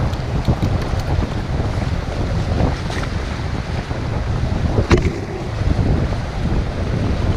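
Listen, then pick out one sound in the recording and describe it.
A man talks close to the microphone.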